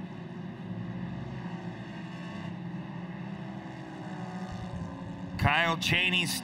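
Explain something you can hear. Racing engines drone steadily in the distance.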